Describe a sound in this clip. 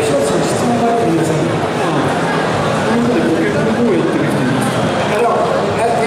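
A young man speaks into a microphone, heard through loudspeakers.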